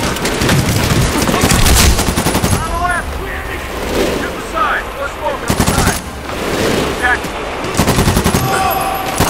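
An assault rifle fires rapid bursts.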